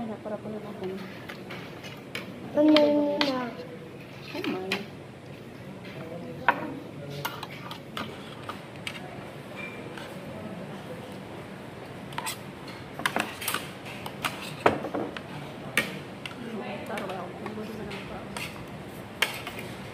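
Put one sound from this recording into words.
Cutlery clinks and scrapes on plates.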